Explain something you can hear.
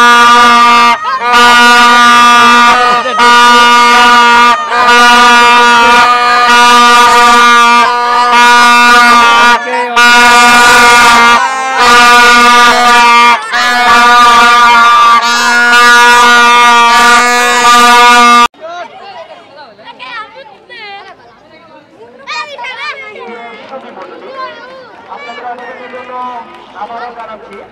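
Children shout and laugh excitedly close by.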